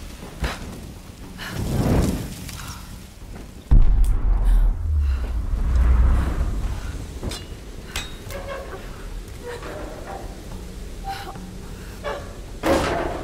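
Fire crackles nearby.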